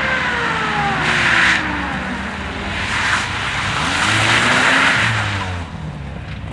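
Tyres squeal on wet tarmac as a car slides through a corner.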